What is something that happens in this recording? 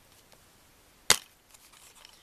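A plastic disc case clicks open.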